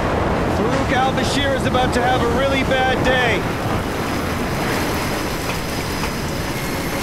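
Strong wind blows steadily outdoors.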